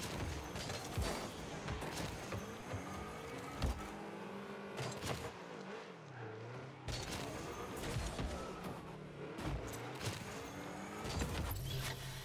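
A video game ball is struck with sharp thuds.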